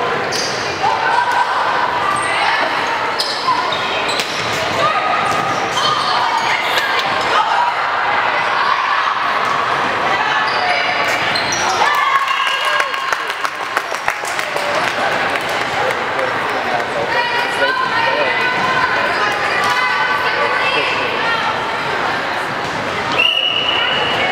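A volleyball is struck with dull slaps.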